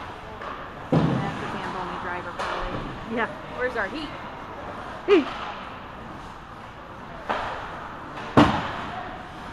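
Hockey sticks smack a puck with sharp cracks now and then.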